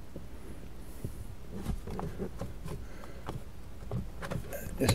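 Plastic trim clicks and rattles as it is pried loose by hand.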